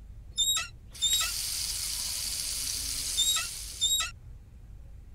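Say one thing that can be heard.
Water runs from a tap into a sink.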